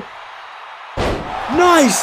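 A body slams down hard onto a ring mat with a heavy thud.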